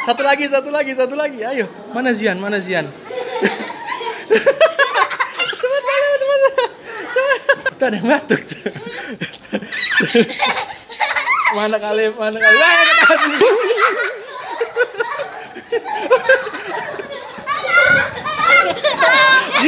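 Young children talk and shout excitedly nearby.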